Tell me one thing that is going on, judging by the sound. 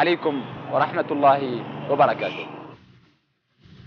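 A young man speaks calmly into a clip-on microphone.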